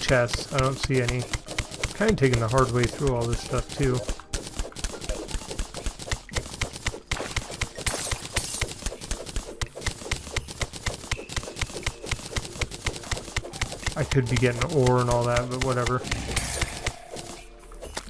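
A pickaxe chips at stone with rapid, repeated clicks.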